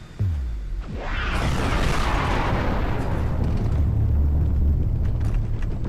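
A huge explosion bursts with a rushing roar.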